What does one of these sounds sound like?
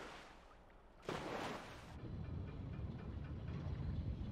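Bubbles rush and gurgle upward.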